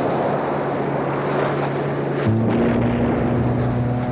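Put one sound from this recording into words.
An explosion booms over the water.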